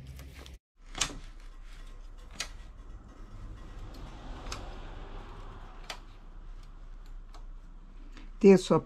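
Metal needles click softly on a knitting machine.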